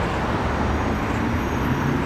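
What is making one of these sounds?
A motor scooter rides past.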